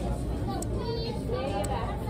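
A young woman licks her fingers with a smacking sound.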